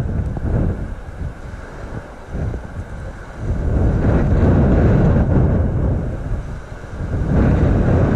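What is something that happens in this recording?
Wind gusts and rumbles across the microphone outdoors.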